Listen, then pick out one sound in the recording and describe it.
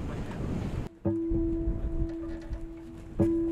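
A guitar string is plucked and rings.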